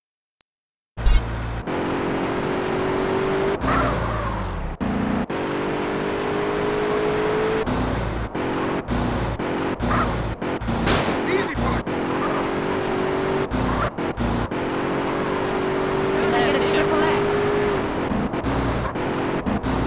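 A car engine hums and revs as it drives.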